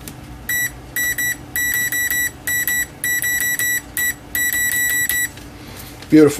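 A multimeter beeps in short repeated bursts.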